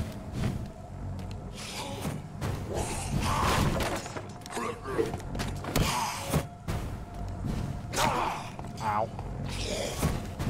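Blades whoosh and clash in a close fight.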